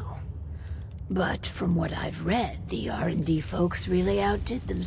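An older woman answers calmly.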